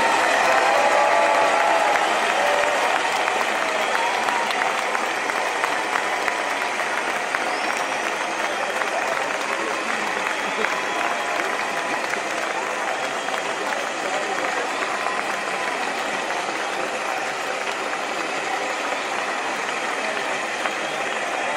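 Several people clap their hands loudly in a large hall.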